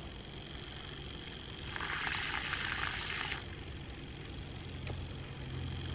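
A handheld milk frother whirs in a mug.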